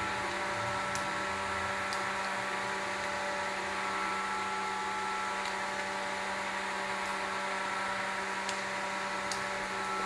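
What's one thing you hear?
Metal tools clink against an engine block.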